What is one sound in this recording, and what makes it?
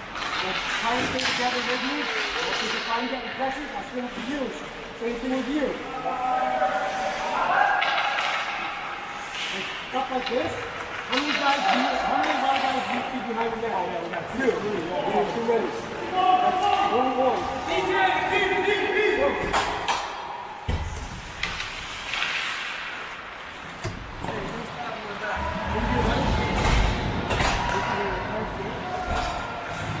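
Adult men call out to each other in a large echoing rink.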